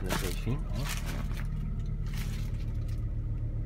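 Plastic sheeting crinkles and rustles close by.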